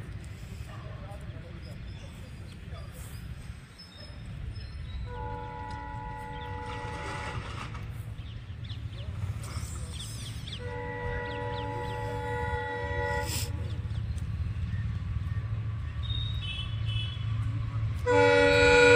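A train rumbles as it approaches, growing louder.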